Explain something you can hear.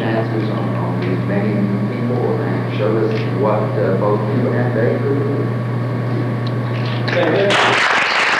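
An elderly man speaks calmly through a microphone.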